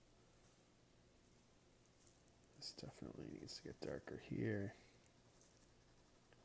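A pencil scratches softly on paper.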